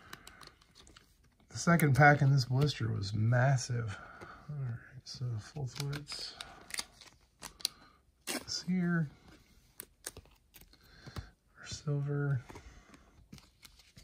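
Trading cards click and rustle as they are handled and laid down.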